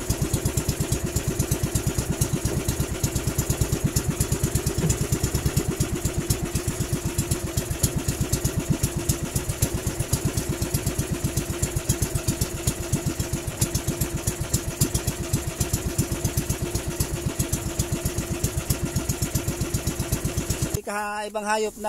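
A boat engine chugs loudly and steadily.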